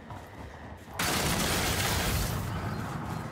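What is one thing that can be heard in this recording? A pistol fires an energy blast with a loud, crackling burst.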